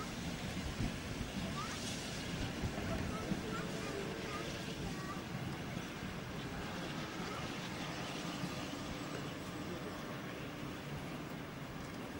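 A steam locomotive chuffs as it rolls slowly away along the tracks.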